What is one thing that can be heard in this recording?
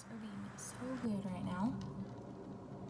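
A young woman speaks close by, casually.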